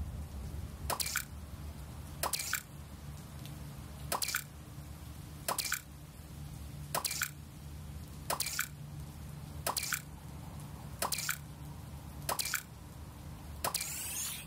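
A game menu clicks sharply each time an option changes.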